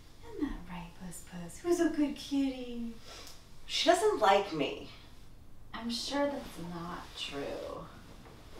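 Two women talk calmly nearby.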